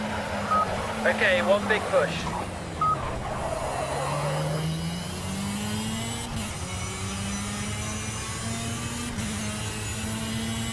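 A kart engine buzzes steadily, its pitch rising and falling as it speeds up and shifts gears.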